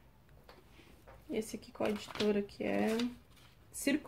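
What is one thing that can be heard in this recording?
Paper pages rustle as a book is leafed through.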